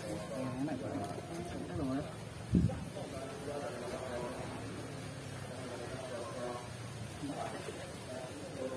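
Young men talk with animation close by, outdoors.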